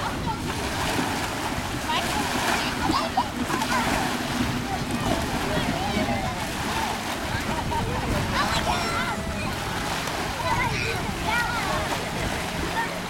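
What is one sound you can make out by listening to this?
Children shout and laugh playfully outdoors.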